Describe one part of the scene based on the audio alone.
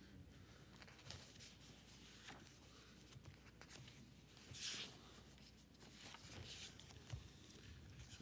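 Paper rustles close to a microphone.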